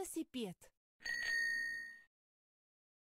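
A bicycle bell rings.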